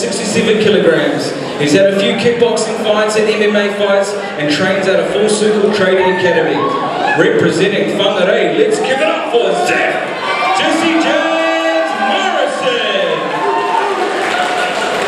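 A man announces loudly and with drawn-out words over a loudspeaker in a large echoing hall.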